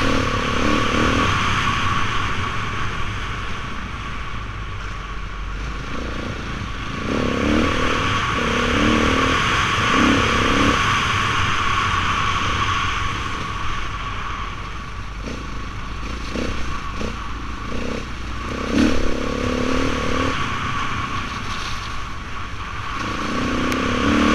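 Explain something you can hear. Wind buffets loudly and steadily past a microphone.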